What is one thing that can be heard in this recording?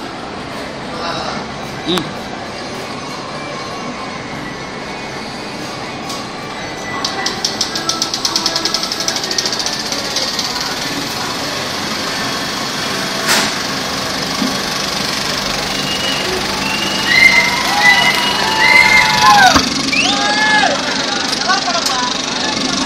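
A film projector hums and whirs steadily.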